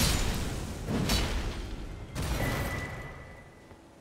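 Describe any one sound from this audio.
Heavy metal blows clash and crash in a fight.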